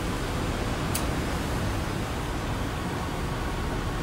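A lighter clicks once.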